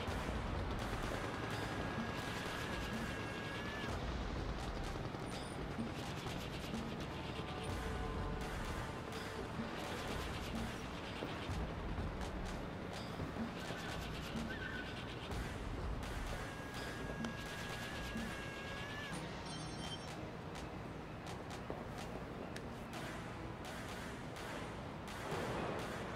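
Footsteps tread softly on a hollow metal roof.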